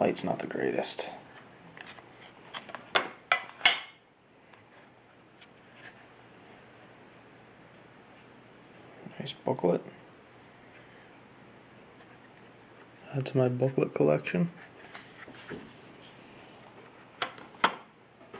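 Cardboard card holders click and rattle as hands handle them close by.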